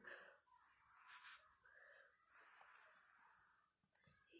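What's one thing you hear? A woman blows softly through a bubble wand.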